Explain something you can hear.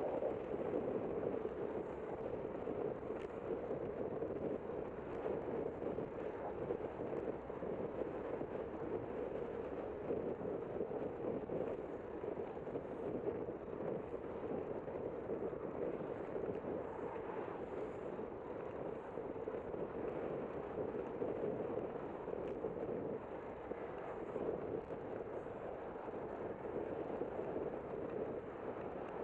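Wind rushes steadily across the microphone outdoors.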